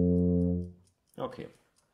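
A tuba plays a low, steady note that stops.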